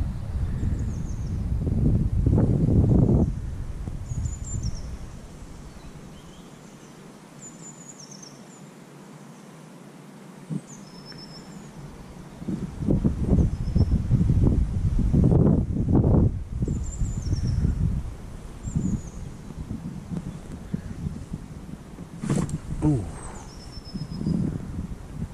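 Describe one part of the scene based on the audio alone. Wind gusts loudly across the microphone outdoors.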